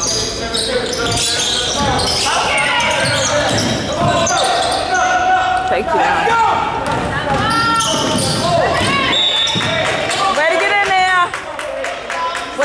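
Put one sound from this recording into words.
Players and spectators call out in a large echoing hall.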